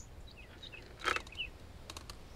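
A car boot lid clicks and opens.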